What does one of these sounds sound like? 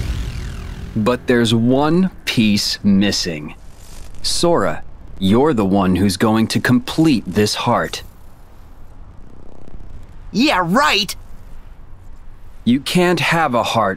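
A young man speaks calmly and coolly.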